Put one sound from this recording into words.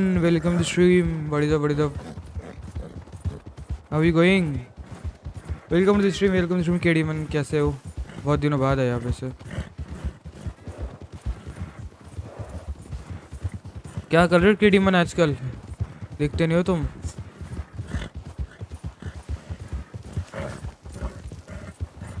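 Horse hooves thud steadily on snow.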